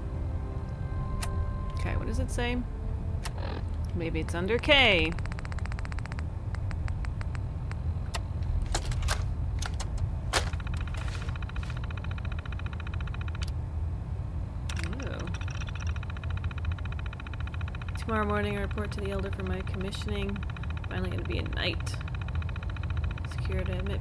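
Short electronic clicks tick as a handheld device's menu is scrolled.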